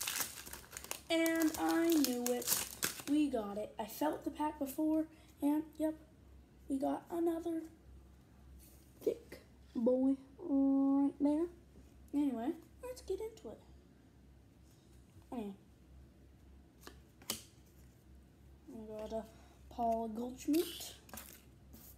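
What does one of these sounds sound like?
A boy talks with animation close by.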